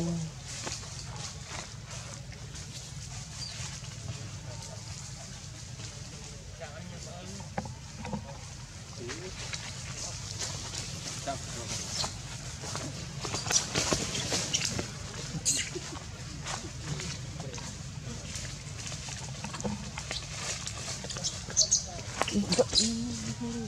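Monkeys rustle and scratch softly as they groom each other.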